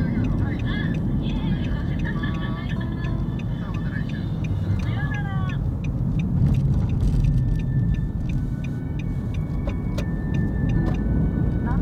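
A car engine hums and tyres rumble on the road from inside the car.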